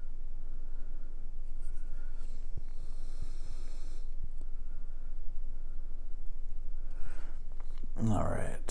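Small plastic parts click and tap softly in a man's hands.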